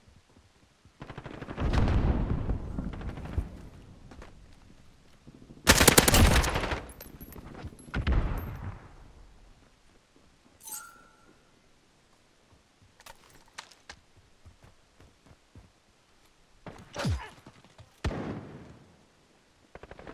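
A rifle fires rapid bursts of shots, loud and close, with echoing booms.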